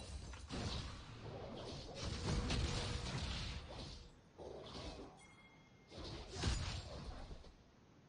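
Fantasy battle sound effects of magic spells and sword hits burst and clash.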